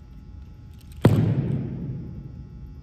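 A rifle butt thuds sharply on a wooden floor.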